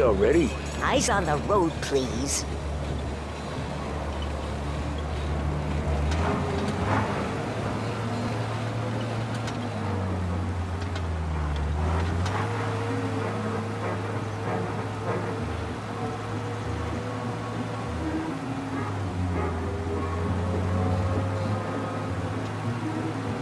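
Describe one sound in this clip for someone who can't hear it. A car engine hums steadily as it drives along.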